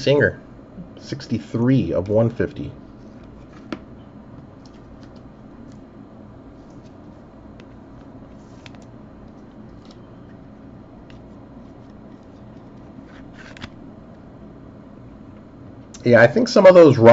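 Trading cards rustle and flick softly as they are sorted by hand.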